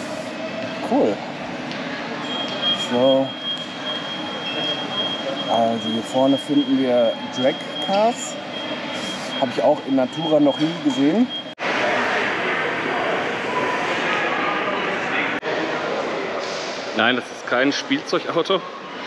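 Many people murmur and talk softly in a large echoing hall.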